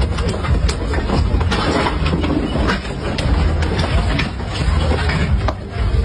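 Plastic chairs clatter and bang on the ground.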